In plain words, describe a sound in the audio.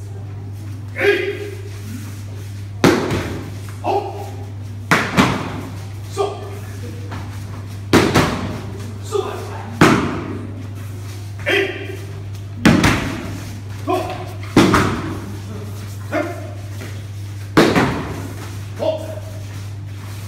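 Bodies thud onto a padded mat again and again.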